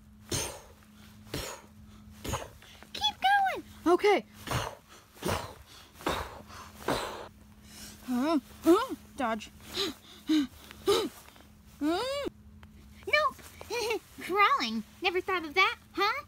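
Soft toys brush and rustle against grass as they are handled.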